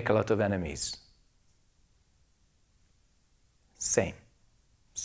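A man speaks calmly and close through a microphone, in short phrases.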